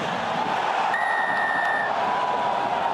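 A referee's whistle blows once, sharp and steady.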